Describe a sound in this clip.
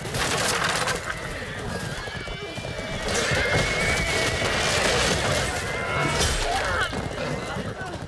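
Men shout and yell in battle nearby.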